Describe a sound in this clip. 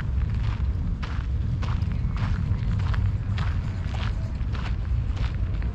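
Wind rumbles across an open seafront.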